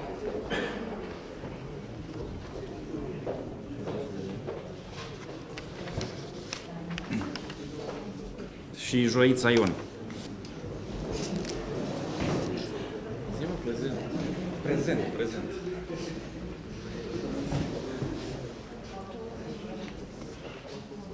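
Several men and women talk quietly in a large echoing room.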